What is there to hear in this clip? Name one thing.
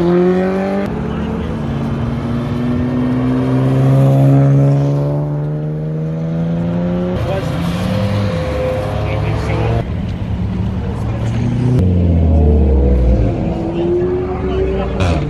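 Car engines roar and rev loudly as cars drive past one after another.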